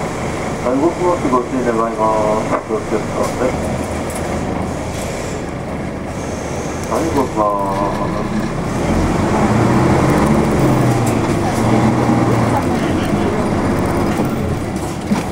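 Cars pass by on the road.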